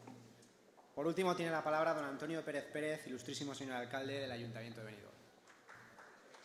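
A man reads out calmly into a microphone.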